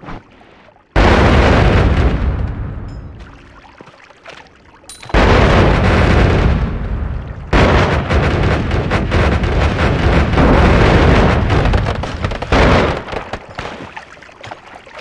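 Heavy rumbling blasts and crackling explosions sound from a video game.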